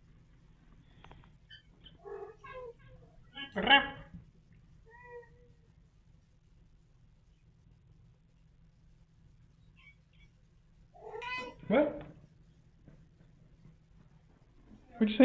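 Kittens mew in high, thin voices.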